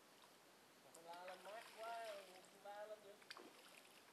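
A young man speaks briefly and close by.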